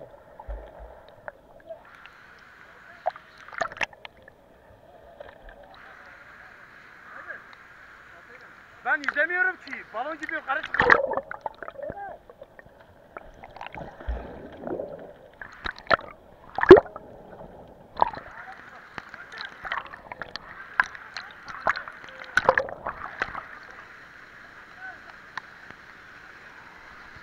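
A waterfall rushes and pours steadily, muffled now and then as if heard from underwater.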